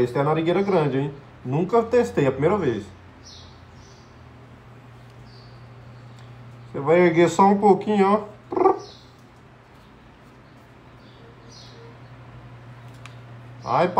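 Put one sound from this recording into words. A man speaks calmly and close by, his voice slightly muffled.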